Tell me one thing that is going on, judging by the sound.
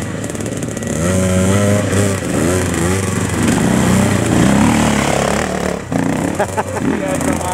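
A dirt bike engine revs loudly as it passes close by.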